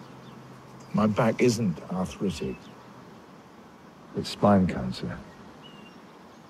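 An elderly man speaks slowly in a low voice, close by.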